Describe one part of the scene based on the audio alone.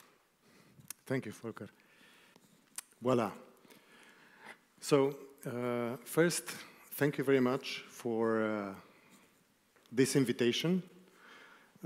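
A man speaks calmly into a microphone in an echoing room.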